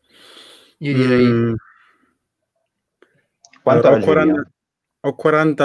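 Young men talk with animation over an online call.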